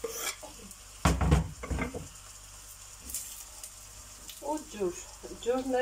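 A wooden spoon knocks and scrapes against a metal pot.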